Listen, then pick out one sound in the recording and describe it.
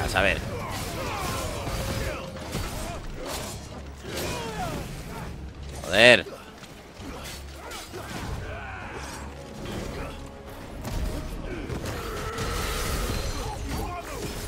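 Blades clash and strike in a fast fight, with loud bursts of impact.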